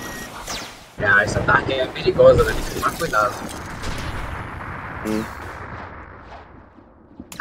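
Loud blasts whoosh and rumble in bursts.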